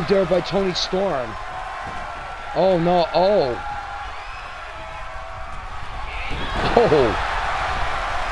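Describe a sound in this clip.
A crowd cheers and roars in a large arena.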